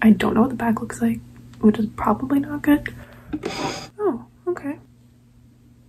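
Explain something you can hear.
A young woman talks up close, calmly and conversationally.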